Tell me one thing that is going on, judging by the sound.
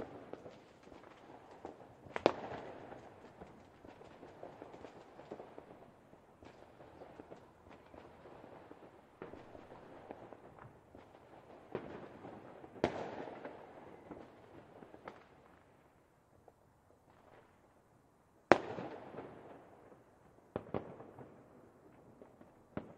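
Fireworks crackle and fizzle after each burst.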